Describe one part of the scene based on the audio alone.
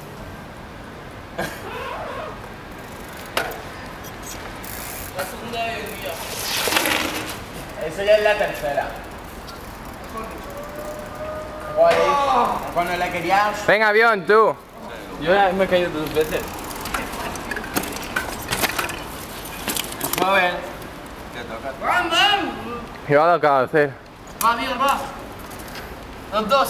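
Bicycle tyres roll and splash on wet pavement.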